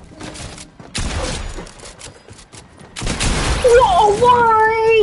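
A shotgun fires in loud, sharp blasts.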